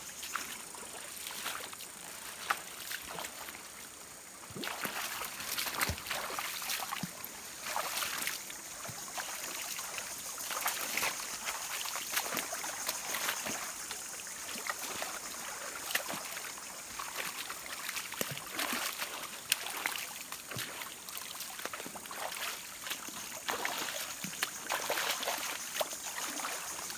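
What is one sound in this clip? A stream gurgles and trickles over stones.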